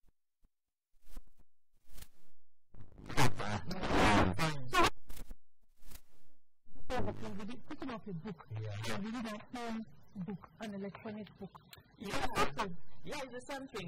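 A woman speaks with animation into a microphone.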